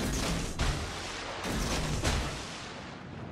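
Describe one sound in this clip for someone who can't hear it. Heavy naval guns fire in loud booming blasts.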